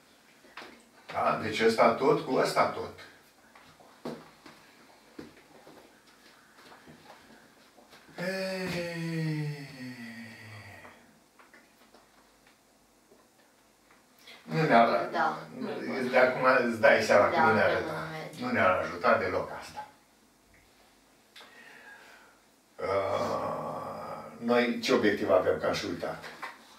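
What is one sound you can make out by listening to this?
An elderly man speaks calmly and explains, close by.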